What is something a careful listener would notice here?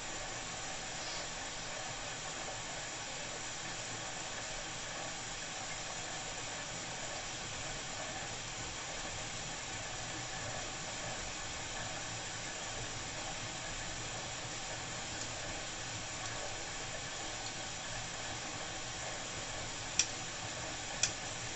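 A washing machine drum turns with a steady hum.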